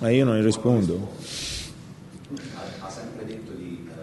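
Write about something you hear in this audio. A middle-aged man laughs softly.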